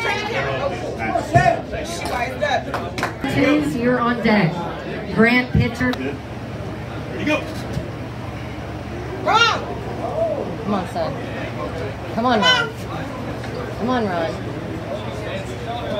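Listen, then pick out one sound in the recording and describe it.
A crowd of men and women chatters and shouts in a lively echoing room.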